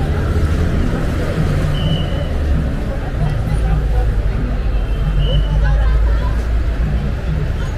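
Many footsteps shuffle on pavement.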